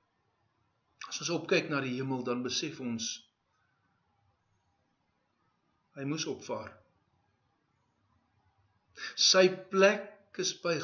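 A middle-aged man speaks calmly and clearly into a close microphone, in short bursts with pauses.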